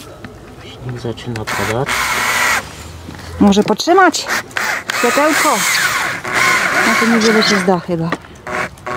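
A cordless drill whirs as it drives into wood.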